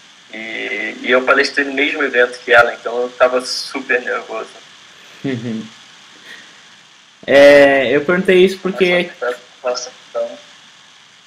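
A young man speaks casually over an online call.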